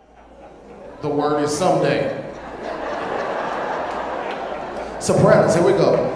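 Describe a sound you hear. A man sings loudly into a microphone in a large echoing hall.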